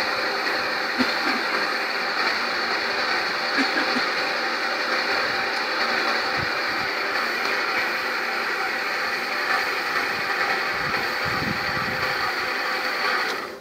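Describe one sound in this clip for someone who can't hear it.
Conveyor belts and plant machinery rumble and whir steadily.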